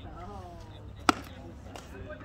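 A baseball pops into a catcher's mitt with a sharp smack.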